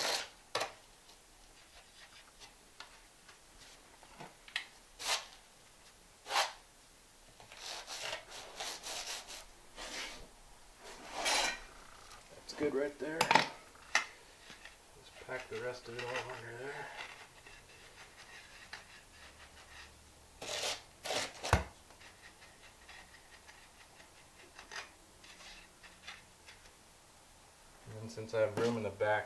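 A trowel scrapes and smooths wet sand mortar.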